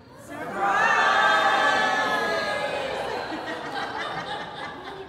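Women cheer and whoop loudly in an echoing room.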